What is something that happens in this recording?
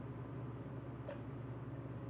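Liquid splashes into a tall shaker.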